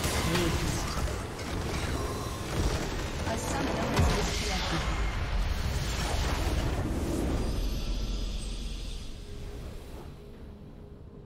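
A large explosion booms and rumbles, then fades away.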